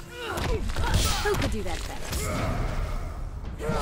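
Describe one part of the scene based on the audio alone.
An energy blast whooshes and roars.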